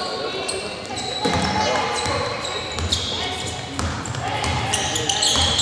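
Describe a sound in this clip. A basketball bounces on a court.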